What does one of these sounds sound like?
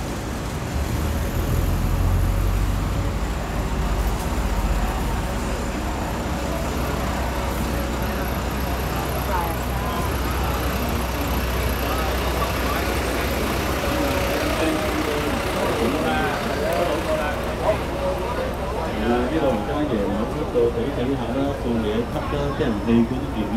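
Traffic and street noise hum steadily outdoors.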